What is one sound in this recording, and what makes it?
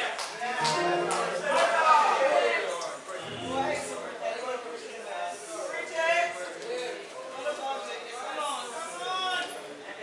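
A man speaks with animation through a loudspeaker in a large echoing hall.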